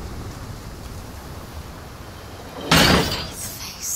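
A heavy wooden door creaks and swings open.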